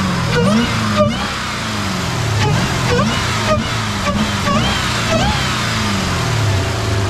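A car engine revs up and down again and again, close by.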